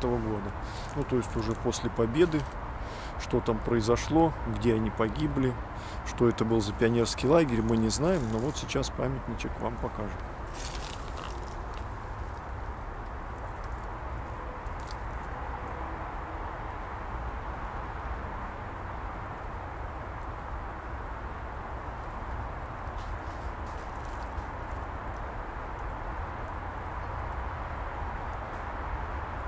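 Wind rustles leaves outdoors.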